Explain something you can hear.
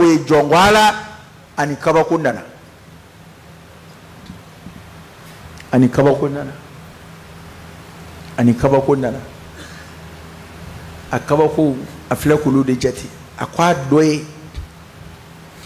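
A man speaks with animation into a microphone, in short bursts with pauses.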